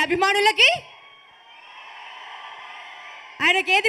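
A large crowd cheers.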